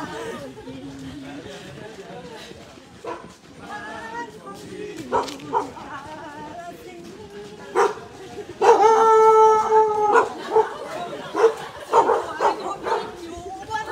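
Several adults talk and call out while running, close by.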